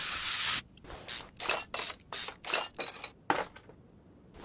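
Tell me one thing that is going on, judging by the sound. A ratchet clicks quickly as bolts are loosened.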